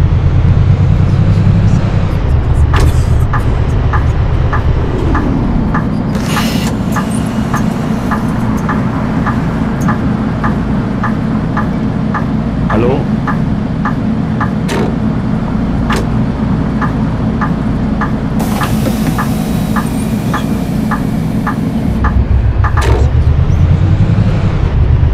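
A bus engine rumbles, revving as the bus drives and idling while it stands.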